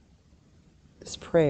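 A woman speaks briefly and calmly, heard through an online call.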